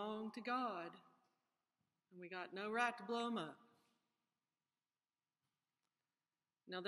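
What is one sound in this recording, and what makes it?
A woman speaks calmly and close up, in short phrases with pauses.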